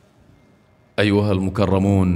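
A man speaks loudly through a loudspeaker.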